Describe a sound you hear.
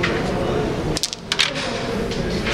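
A striker disc cracks against wooden game pieces, sending them clattering across a board.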